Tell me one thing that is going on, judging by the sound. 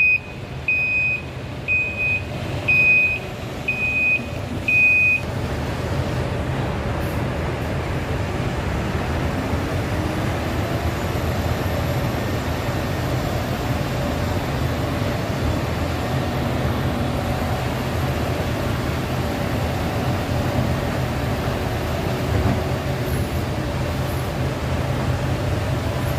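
A diesel dump truck's engine runs.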